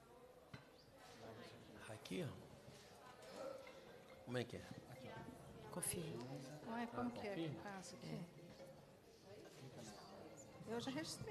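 Several men and women talk at once, close by.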